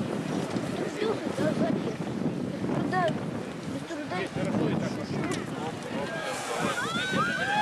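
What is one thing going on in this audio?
A crowd of men and women shouts and cries out in alarm outdoors.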